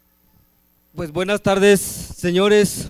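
A woman speaks loudly over loudspeakers in a large echoing hall.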